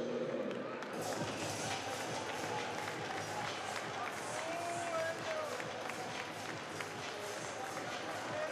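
Spectators clap their hands rapidly and steadily.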